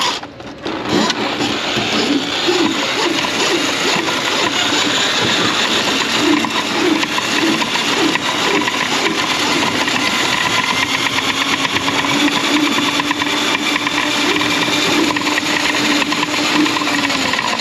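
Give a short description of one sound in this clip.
A spinning metal cable rattles against a pipe.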